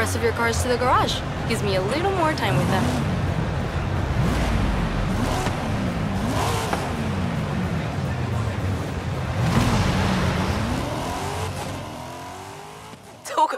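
A sports car engine rumbles and revs up and down.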